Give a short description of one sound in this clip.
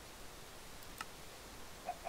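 A single soft click sounds.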